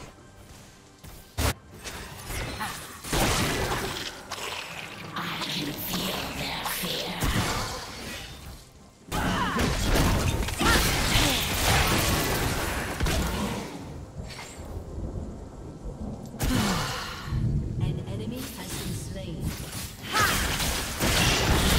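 Game spell effects whoosh and burst.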